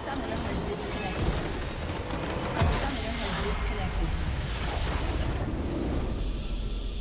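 Magic blasts and explosions burst and crackle loudly in a game battle.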